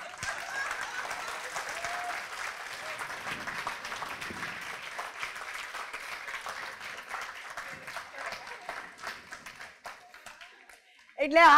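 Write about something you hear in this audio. A large audience claps and cheers.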